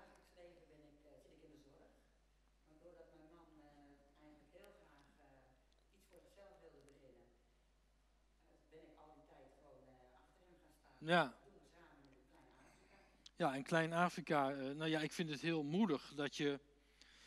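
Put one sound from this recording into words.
A middle-aged woman speaks calmly into a microphone nearby.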